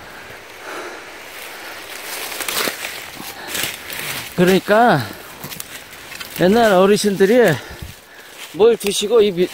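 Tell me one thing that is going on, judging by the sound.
Dry leaves crunch underfoot.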